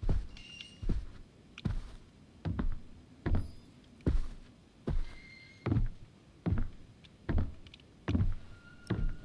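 Slow, heavy footsteps thud on a wooden floor.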